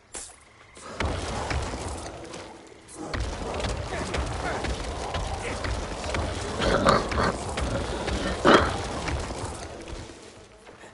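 Spells crackle and burst in a fight.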